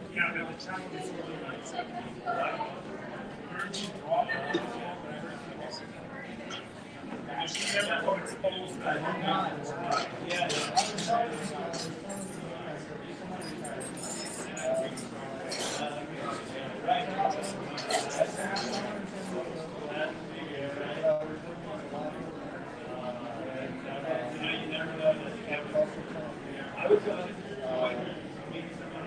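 Several men talk and chatter nearby.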